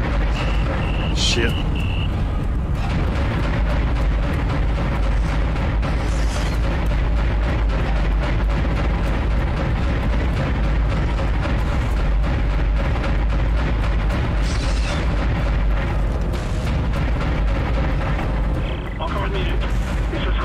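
Heavy guns fire in rapid bursts.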